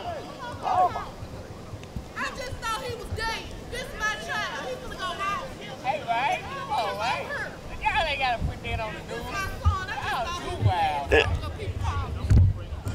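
A woman shouts loudly and with anger.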